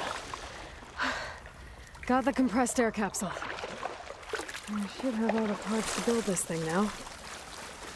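Water splashes and sloshes as someone wades through it.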